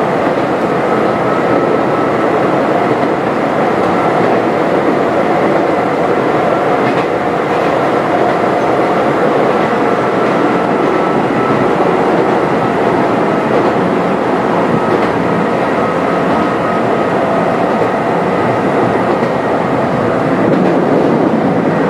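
A train rumbles steadily along the rails, heard from inside the cab.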